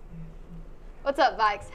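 A young woman speaks brightly and clearly into a microphone.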